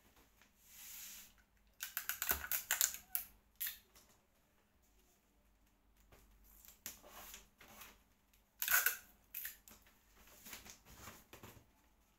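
Wrapping paper rustles and tears as a child unwraps a box.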